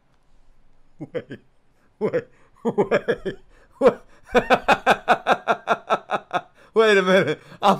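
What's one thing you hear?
A young man laughs hard and loudly, close to a microphone.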